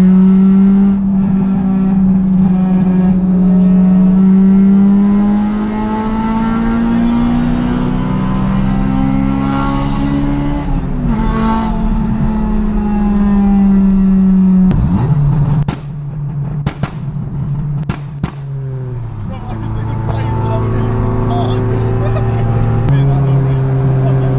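A car engine hums from inside the car, its pitch rising and dropping now and then.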